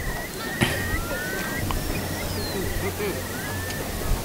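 Seagulls call overhead.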